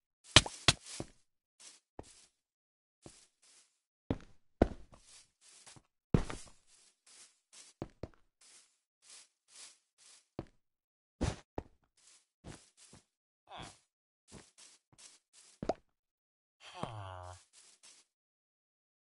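Blocks crunch and click as they are broken and placed.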